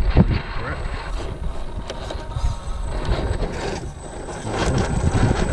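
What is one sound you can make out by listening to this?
An electric motor whirs as a small model truck climbs over rocks.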